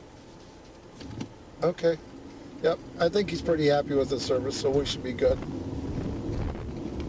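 A car engine hums as the car pulls away and drives along a road.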